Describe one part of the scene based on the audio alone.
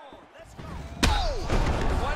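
A kick lands on a body with a hard smack.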